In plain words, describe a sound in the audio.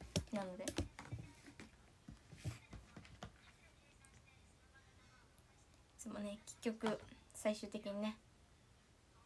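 A young woman speaks quietly and calmly, close to a microphone.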